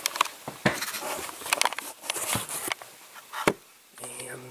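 Thin wooden sticks tap and click against a plastic sheet close by.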